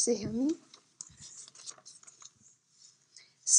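Paper pages rustle as a book is handled.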